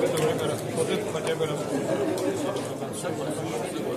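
Game pieces click as they are moved on a board.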